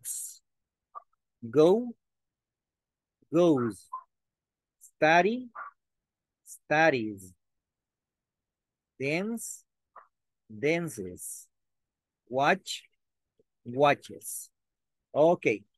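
A woman speaks slowly and clearly over an online call, pronouncing words one at a time.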